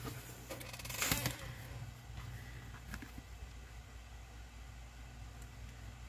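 Fabric rustles as hands lift and fold it.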